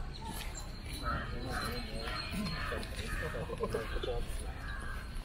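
Men talk quietly a short way off.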